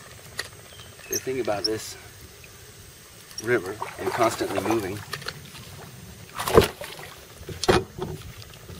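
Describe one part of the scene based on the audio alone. A middle-aged man speaks close by, outdoors.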